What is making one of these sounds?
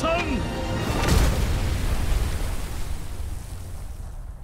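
Waves crash loudly against rocks.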